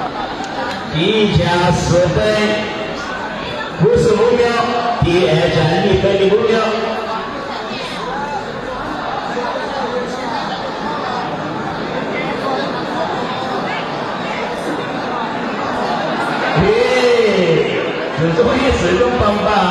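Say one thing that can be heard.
Men in a crowd shout loudly.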